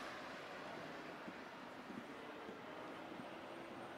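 A car approaches along the street.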